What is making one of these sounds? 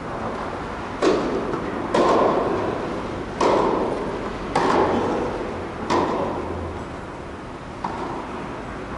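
Tennis balls are struck back and forth, each hit popping and echoing in a large hall.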